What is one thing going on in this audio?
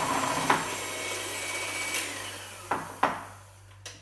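An electric hand mixer knocks against a bowl.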